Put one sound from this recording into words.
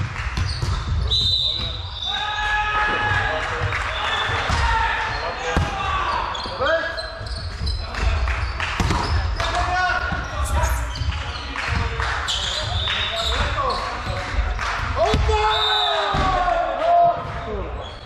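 Sneakers squeak sharply on a wooden floor.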